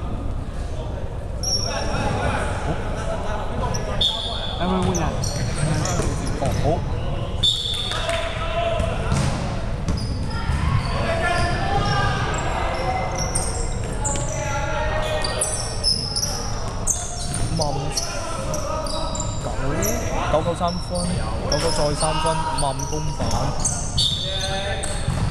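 Sneakers squeak sharply on a hardwood floor in a large echoing hall.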